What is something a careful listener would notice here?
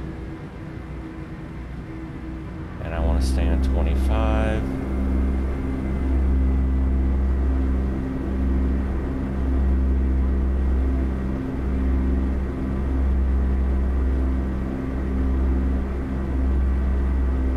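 Tyres hum on a highway.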